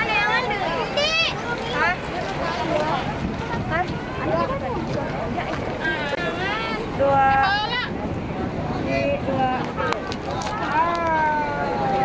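Young women talk and call out excitedly close by.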